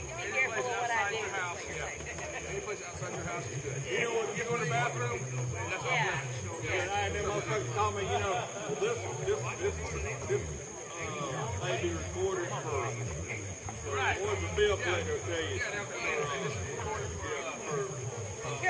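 Men and women talk and call out nearby outdoors.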